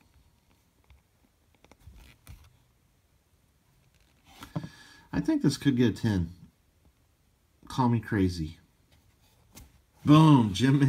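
A hard plastic card case rubs and clicks softly in a person's hands.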